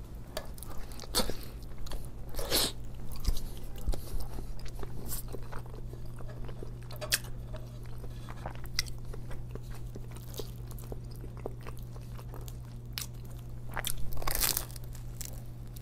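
A man bites into crusty bread with a loud crunch.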